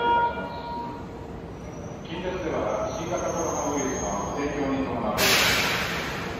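A stopped electric train hums steadily nearby.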